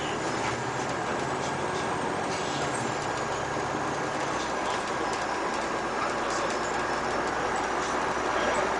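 Tyres roar on an asphalt road.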